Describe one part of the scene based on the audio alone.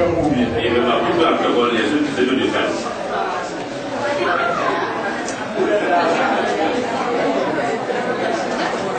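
A man speaks into a microphone, heard through a loudspeaker in an echoing room.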